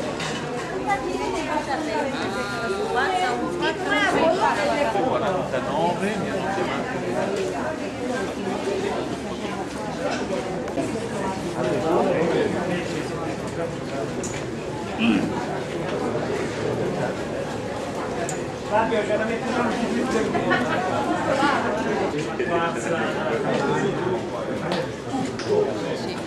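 Several men and women talk and chatter close by.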